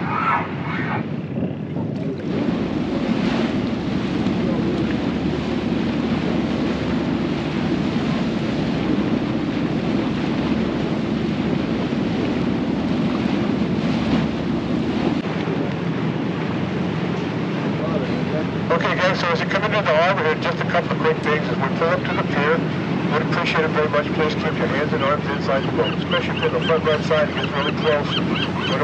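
Small waves lap and splash.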